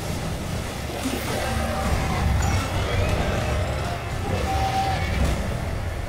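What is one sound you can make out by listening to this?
Thick liquid churns and sloshes.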